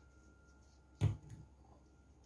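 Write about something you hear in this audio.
A glass bottle knocks down onto a hard surface.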